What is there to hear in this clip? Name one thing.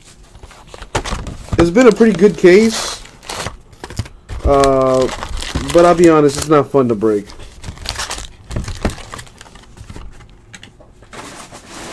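Foil card packs crinkle and rustle as they are handled.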